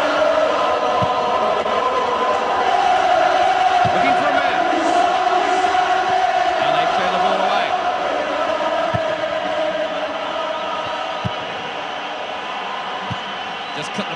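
A football is kicked with dull thuds now and then.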